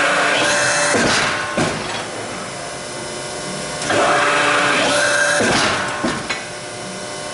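Steel rebar clanks against the press.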